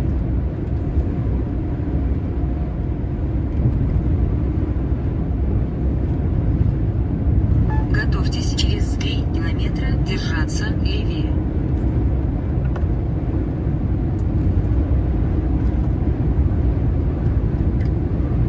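A vehicle's engine and tyres rumble steadily on a motorway.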